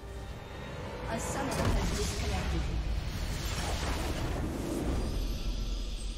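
Magic spells burst and crackle in a game battle.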